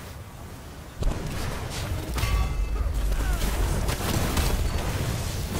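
A fiery explosion roars loudly.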